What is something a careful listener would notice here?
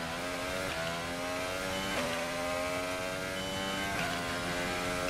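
A racing car's gearbox shifts up with sharp clicks.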